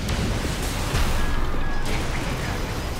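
A huge explosion booms.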